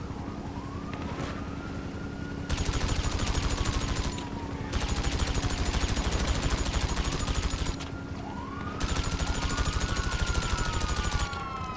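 A helicopter's rotor drones overhead.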